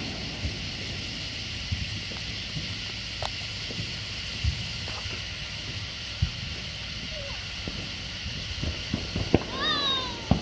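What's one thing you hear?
Sparklers hiss and crackle steadily close by.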